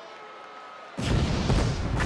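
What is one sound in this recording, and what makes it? Pyrotechnics burst and hiss loudly.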